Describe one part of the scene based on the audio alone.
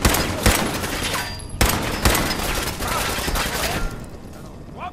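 Rapid gunshots fire and echo loudly.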